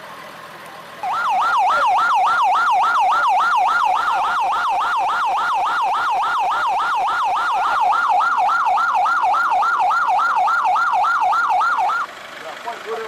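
An ambulance siren wails loudly and rapidly.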